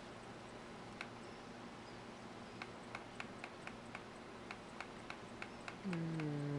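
Soft menu clicks tick one after another as options scroll.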